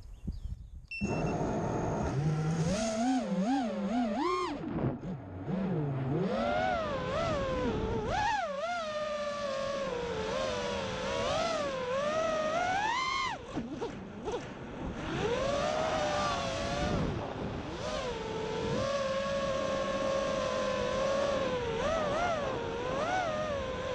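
A drone's motors whine loudly, rising and falling in pitch as it speeds along.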